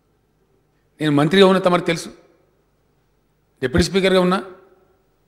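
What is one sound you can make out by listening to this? A middle-aged man speaks firmly into a microphone in a large echoing hall.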